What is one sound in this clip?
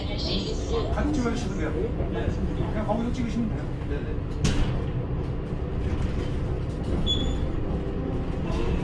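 A bus engine rumbles steadily from inside the cab.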